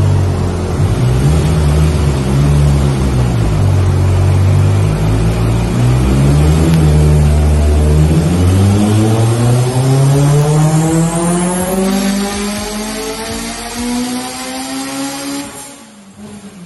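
A car engine roars loudly, its pitch climbing steadily as it revs hard.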